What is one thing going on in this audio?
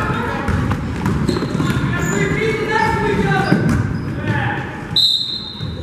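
Boys shout to each other in a large echoing gym.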